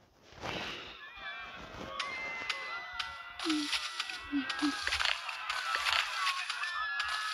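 Game sound effects play through a small phone speaker.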